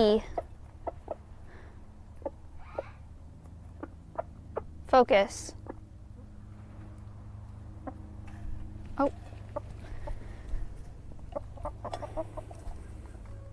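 Chickens peck at food in a metal bowl.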